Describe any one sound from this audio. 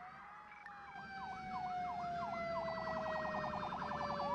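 A fire engine siren yelps quickly.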